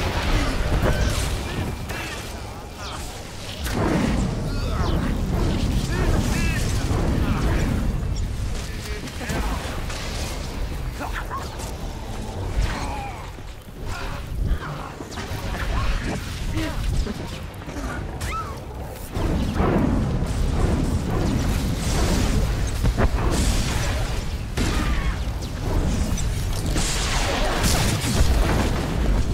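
Energy blasts and sword strikes crackle and clash in a fast game battle.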